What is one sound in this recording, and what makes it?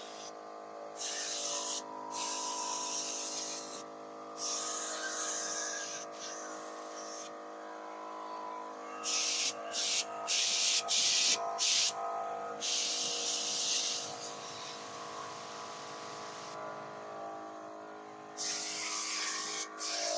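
A spray gun hisses in short bursts.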